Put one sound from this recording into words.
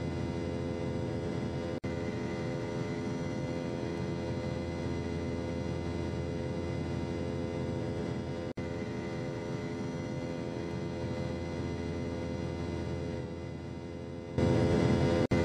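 Turbofan engines of a jet airliner drone steadily in flight.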